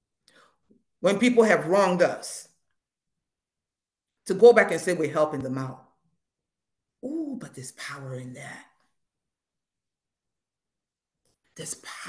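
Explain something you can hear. A woman speaks calmly in short phrases with pauses, heard through an online call.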